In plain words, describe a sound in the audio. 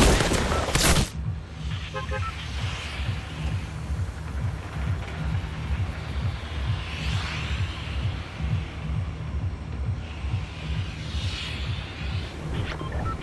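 A propeller engine drones steadily overhead.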